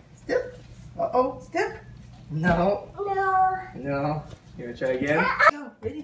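A toddler squeals and giggles.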